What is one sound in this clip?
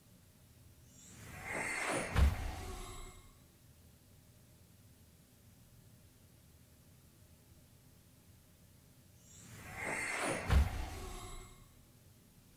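A game sound effect whooshes and thumps twice.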